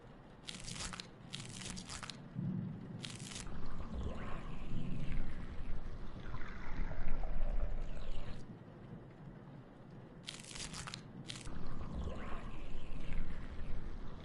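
A wet squelch sounds as a metal instrument pushes into flesh.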